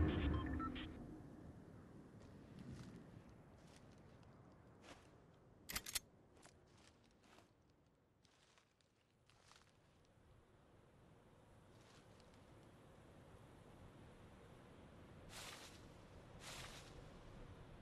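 Short sharp game sound effects click and swish now and then.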